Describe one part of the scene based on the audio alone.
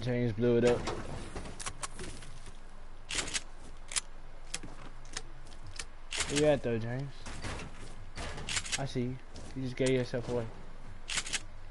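Building pieces in a video game snap into place with sharp clacks.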